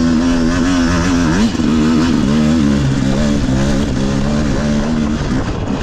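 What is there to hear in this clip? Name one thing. A dirt bike engine revs and burbles up close, its pitch rising and falling.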